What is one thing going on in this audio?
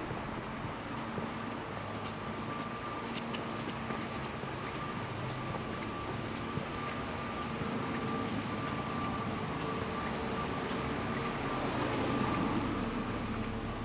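Footsteps walk steadily on a concrete pavement outdoors.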